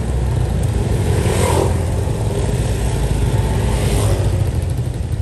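Motorbikes pass by on the road.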